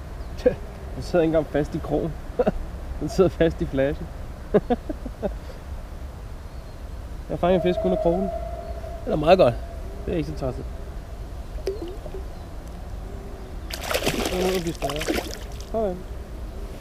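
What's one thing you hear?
A man speaks calmly close to the microphone.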